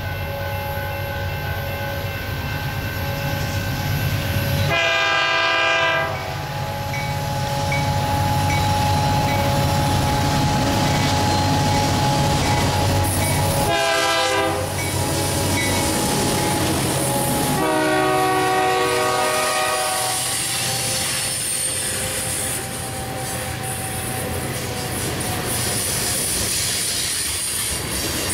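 A freight train's diesel engines rumble steadily as the train approaches and passes close by.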